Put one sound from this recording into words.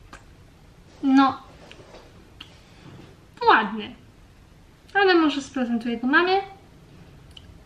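A young woman speaks close to a microphone in short, lively bursts.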